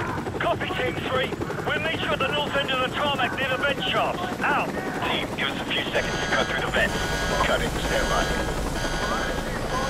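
A helicopter flies overhead with a thudding rotor.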